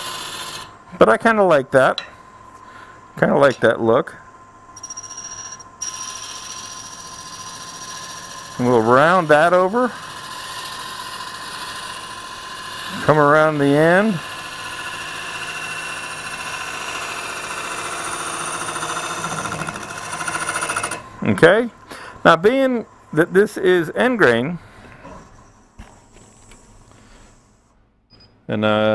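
A wood lathe whirs steadily.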